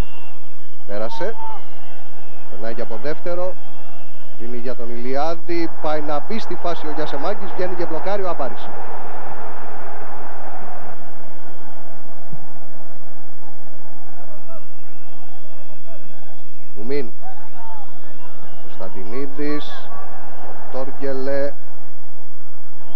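A large stadium crowd roars and murmurs, swelling loudly for a while before settling.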